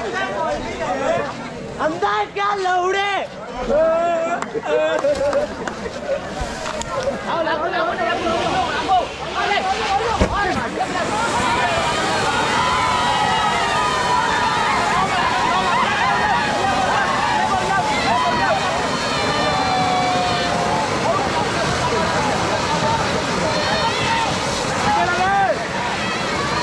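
Fireworks hiss and crackle as they burn on the ground outdoors.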